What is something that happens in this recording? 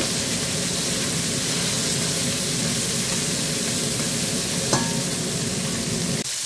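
A spatula scrapes and knocks against a metal pot.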